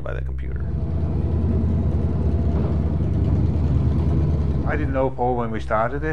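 A car engine idles with a deep, rumbling throb.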